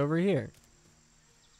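A man exclaims loudly into a microphone with a rising voice.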